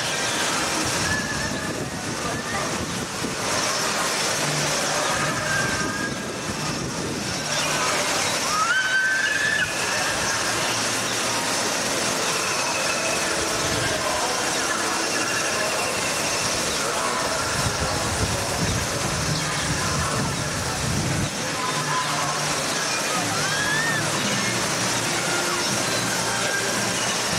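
Water rushes and splashes steadily down a flume into a pool.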